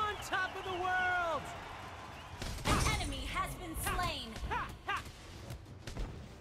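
Magic spells zap and weapons clash in a fast fight.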